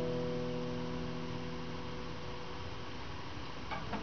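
A chord on an acoustic guitar rings out and slowly fades.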